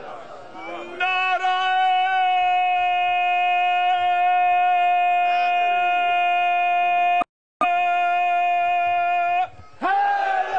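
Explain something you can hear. A man chants a long, held note loudly through a microphone and loudspeakers.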